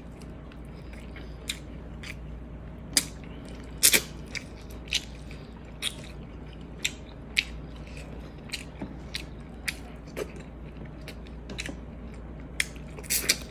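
Fingers pick and squish through soft food close up.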